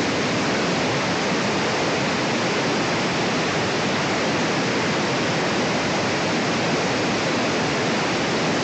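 A power drill hammers loudly and steadily into brick close by.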